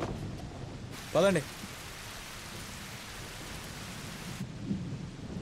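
Heavy rain falls outdoors.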